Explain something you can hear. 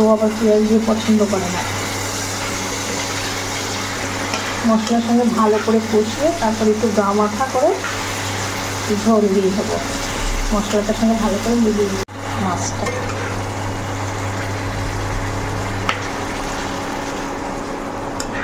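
Sauce sizzles and bubbles in a hot pan.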